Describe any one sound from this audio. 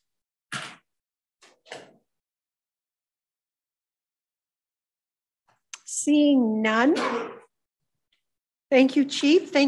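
A woman speaks calmly through a microphone, with pauses.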